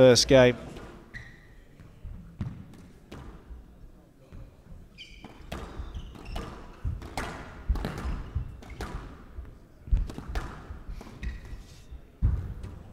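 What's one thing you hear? Sneakers squeak sharply on a wooden court floor.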